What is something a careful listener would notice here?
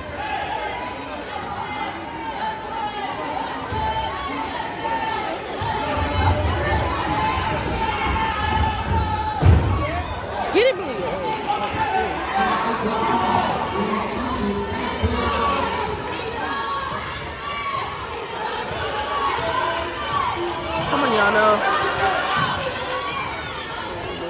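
Sneakers squeak on a wooden court.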